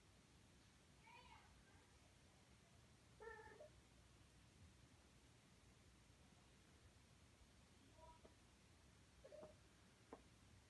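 A cat meows several times.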